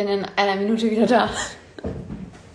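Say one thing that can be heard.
A young woman speaks excitedly and close by.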